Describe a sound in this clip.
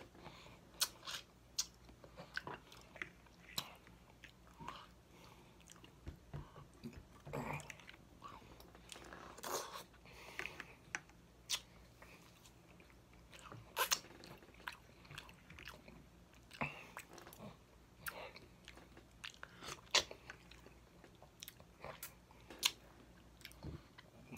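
A man chews and smacks his lips close to a microphone.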